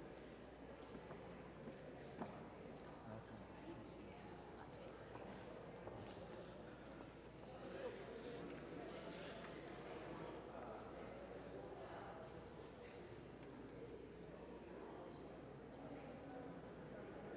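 A crowd of adults chats and greets one another in a large echoing hall.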